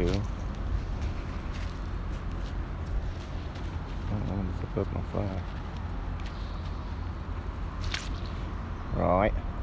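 Footsteps squelch on wet, grassy ground.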